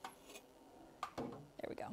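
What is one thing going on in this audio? A metal oven door clanks shut.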